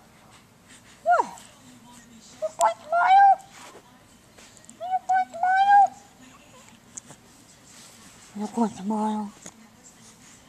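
A baby coos and babbles softly up close.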